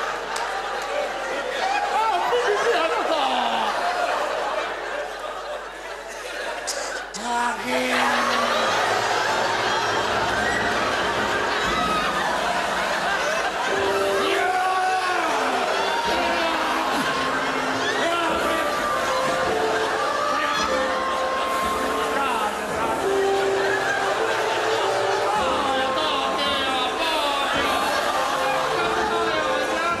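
A man speaks loudly on a stage with animation.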